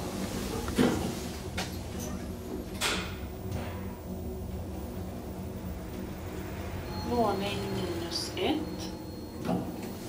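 An elevator hums low and steadily as it travels.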